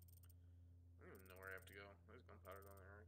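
A young man speaks casually, close to a microphone.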